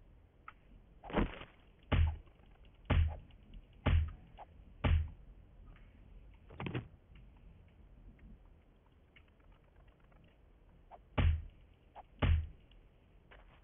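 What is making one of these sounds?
A club strikes a body with heavy, repeated thuds.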